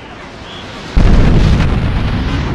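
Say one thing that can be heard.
A heavy body lands on a street with a deep booming crash.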